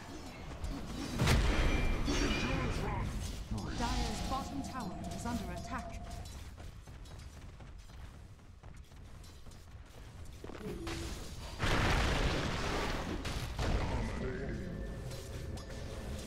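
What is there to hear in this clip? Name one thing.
Game battle sound effects crash and whoosh in loud bursts.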